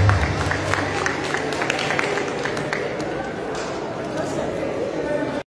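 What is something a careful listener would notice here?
A trumpet plays a melody in a large echoing hall.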